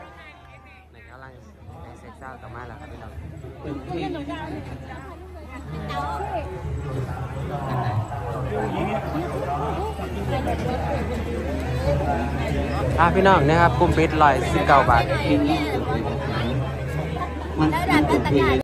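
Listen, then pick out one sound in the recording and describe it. A crowd of young people chatters and cheers nearby.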